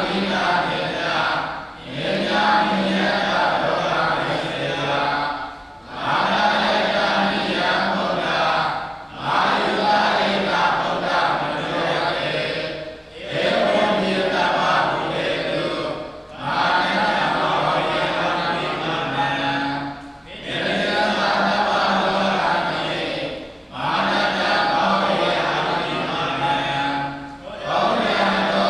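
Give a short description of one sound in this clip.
A middle-aged man chants steadily through a microphone, pausing briefly between phrases.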